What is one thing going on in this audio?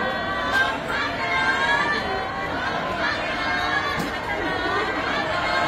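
A crowd of young women cheers and screams excitedly in an echoing hall.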